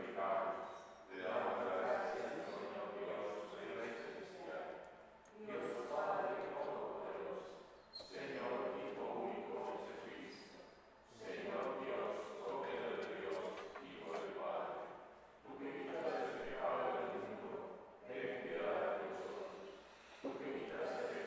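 A middle-aged man prays aloud in a calm, steady voice through a microphone in an echoing hall.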